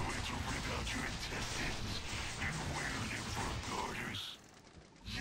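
A heavy gun fires in rapid, loud bursts.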